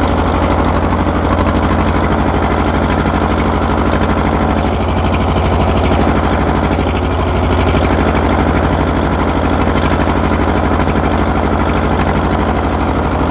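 An old tractor engine chugs steadily up close.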